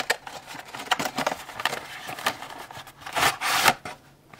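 Paper crinkles as a sheet is pulled out.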